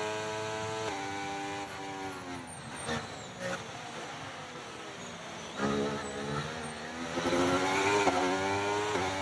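A racing car engine drops in pitch as the car slows, then revs up again.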